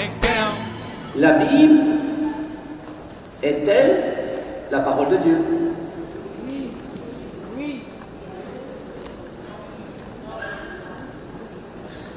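A man speaks with animation into a microphone in a large echoing hall.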